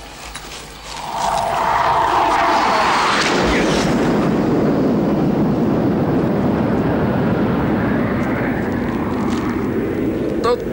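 A propeller plane roars loudly overhead.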